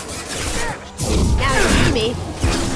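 A crackling energy blast bursts.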